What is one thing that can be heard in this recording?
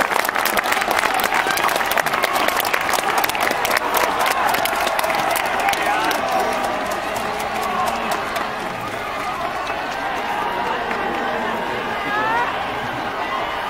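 A large stadium crowd cheers and chants in the open air.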